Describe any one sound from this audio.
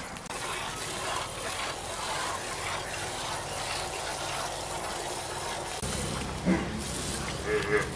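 Milk squirts rhythmically into a metal pail.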